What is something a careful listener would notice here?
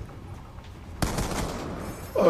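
Gunfire bursts from a video game.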